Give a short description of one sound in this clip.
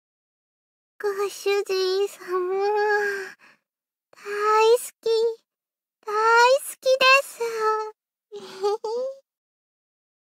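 A young woman speaks softly and sweetly in a high voice, then giggles.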